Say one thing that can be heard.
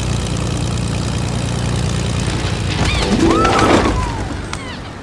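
A plane engine drones steadily, then cuts out.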